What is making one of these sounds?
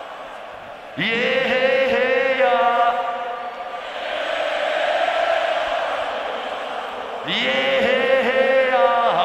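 A harmonica plays a bending melody through loudspeakers.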